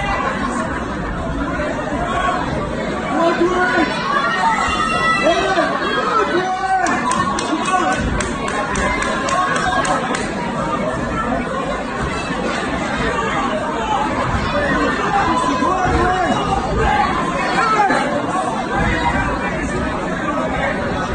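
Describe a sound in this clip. A crowd of men shouts and cheers in a large echoing hall.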